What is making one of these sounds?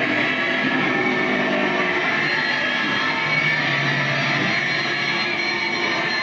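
A guitar plays loud distorted chords.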